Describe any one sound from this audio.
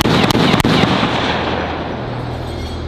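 Sharp bangs burst out at the start and die away with a rushing roar.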